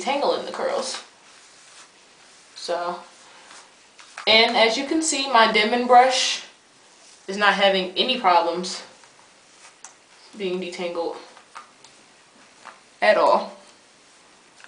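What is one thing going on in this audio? A young woman talks calmly close by, in short bursts.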